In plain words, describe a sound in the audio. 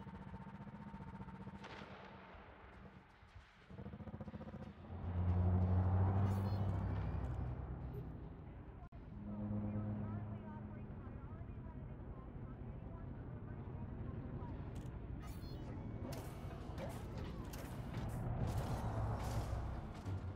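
A spaceship engine hums low and steadily, swelling louder at times.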